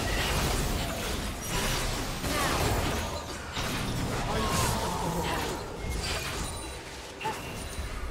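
Magic blasts hit with sharp bursts.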